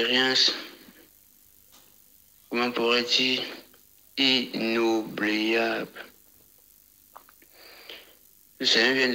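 A man speaks loudly and with animation through a microphone, in short bursts with pauses.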